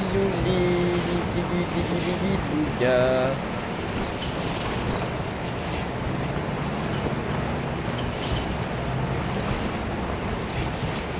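A car engine rumbles steadily.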